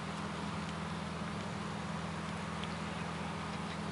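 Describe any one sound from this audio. A cat chews and crunches on a leaf.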